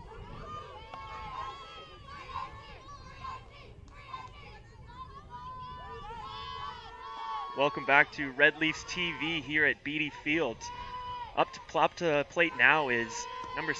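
Young women chant and cheer loudly from the sideline, outdoors.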